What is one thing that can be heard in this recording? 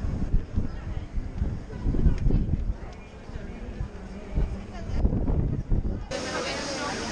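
Wind buffets a microphone outdoors.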